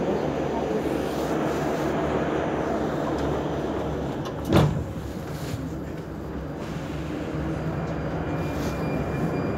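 A stationary underground train hums steadily in an echoing tunnel.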